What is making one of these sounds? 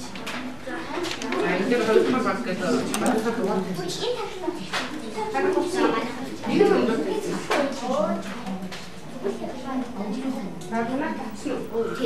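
A woman speaks steadily at a moderate distance.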